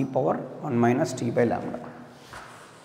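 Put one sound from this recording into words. A young man speaks clearly and calmly, close by.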